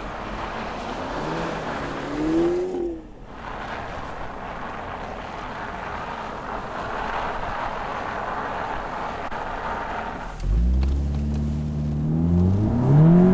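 A car engine revs and climbs in pitch.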